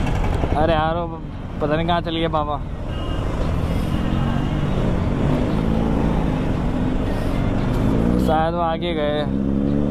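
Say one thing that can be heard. Traffic rumbles all around.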